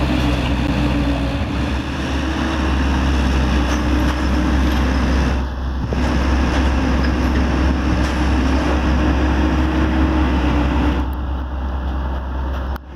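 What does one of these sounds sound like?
A train rumbles steadily across a bridge nearby.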